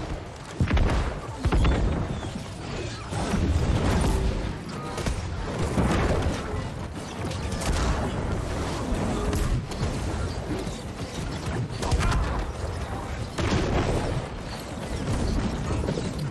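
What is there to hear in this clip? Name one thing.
Magic spells whoosh and crackle in a fierce fight.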